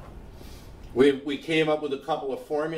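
An older man lectures calmly, close by.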